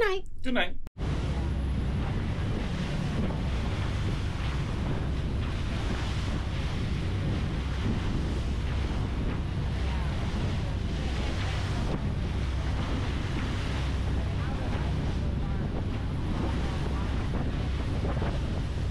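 Waves splash against a moving boat's hull.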